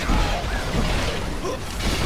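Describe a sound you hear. A fire spell bursts with a whoosh.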